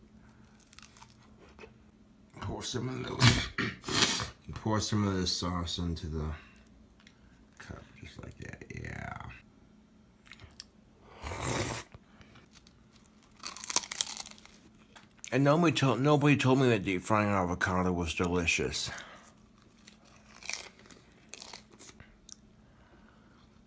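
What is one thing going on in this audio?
A man chews and smacks his lips close up.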